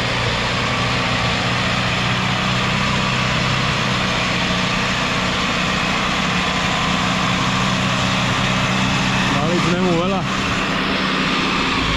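A mulcher grinds through brush with a loud whir.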